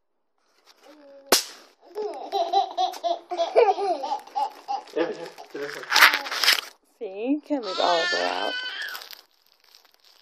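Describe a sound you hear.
A baby laughs and coos close by.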